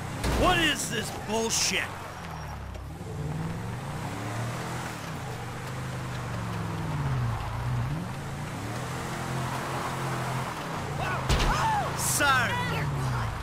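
A car engine revs up and down as the car swerves.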